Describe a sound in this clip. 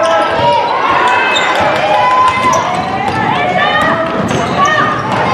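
Sneakers squeak sharply on a hall floor in a large echoing gym.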